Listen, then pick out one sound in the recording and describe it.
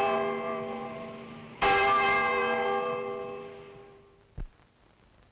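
A large clock bell strikes twice, its deep ringing slowly fading.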